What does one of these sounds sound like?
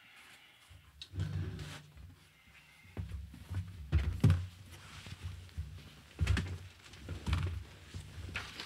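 A cardboard box knocks and scrapes as it is handled close to a microphone.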